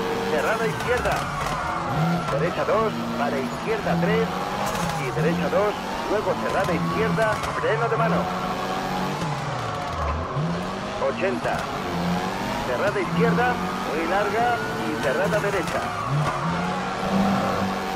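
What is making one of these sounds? Tyres screech as a car slides through corners.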